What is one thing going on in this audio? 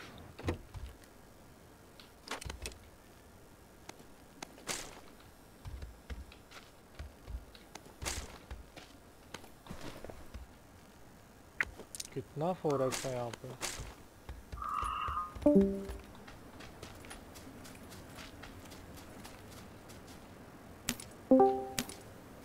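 Short clicks and rustles sound as gear is picked up and sorted.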